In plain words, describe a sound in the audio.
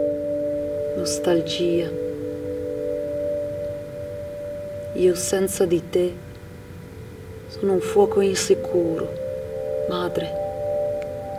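A man speaks slowly in short, halting phrases.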